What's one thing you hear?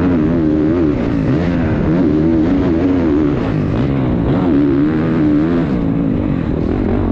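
A dirt bike engine revs loudly up close, rising and falling as it shifts.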